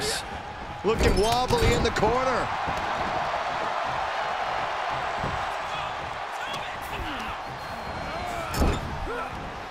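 Heavy thuds of bodies slamming onto a wrestling ring.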